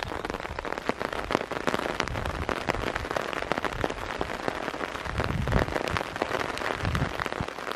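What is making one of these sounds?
Footsteps squelch and slap through wet mud at a steady walking pace.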